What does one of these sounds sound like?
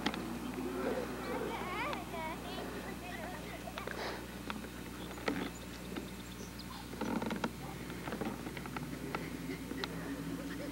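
A young boy calls out faintly at a distance.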